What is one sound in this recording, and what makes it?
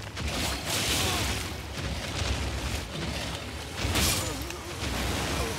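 Heavy blows crash and thud in a fight.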